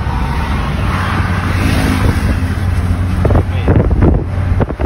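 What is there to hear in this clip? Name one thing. A motorcycle engine roars past close by.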